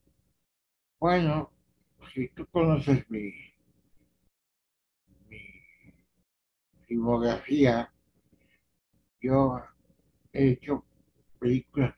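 An elderly man speaks calmly and slowly over an online call.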